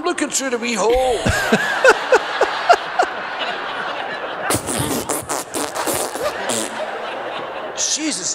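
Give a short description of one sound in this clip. A man laughs heartily into a close microphone.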